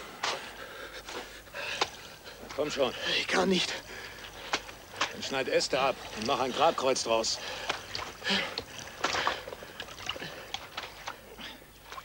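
Stones crunch and clatter as men scrabble on a riverbank.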